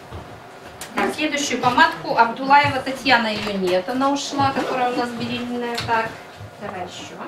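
A woman speaks clearly and with animation close by.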